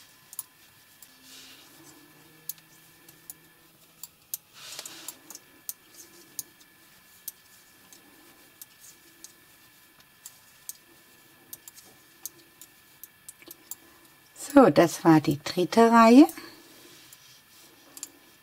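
Metal knitting needles click and tick against each other.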